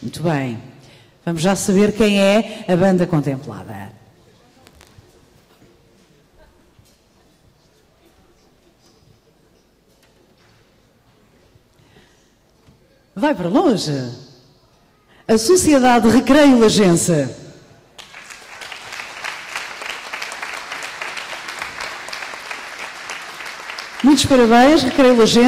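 A woman speaks into a microphone over loudspeakers in an echoing hall.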